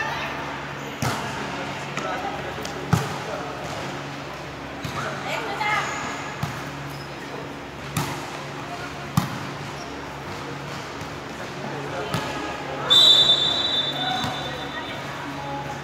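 A volleyball thumps off hands and arms, echoing in a large hall.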